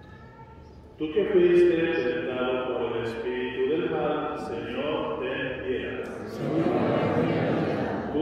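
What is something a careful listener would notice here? An older man sings loudly through a loudspeaker.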